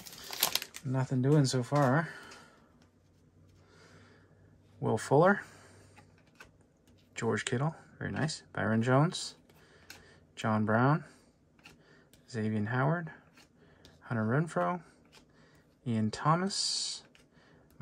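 Stiff cards slide and flick against each other.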